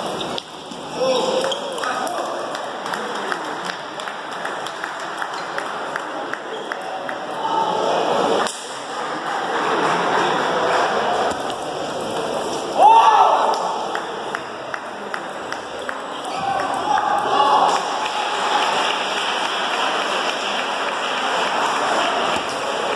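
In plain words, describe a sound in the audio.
A ping-pong ball clicks on a table.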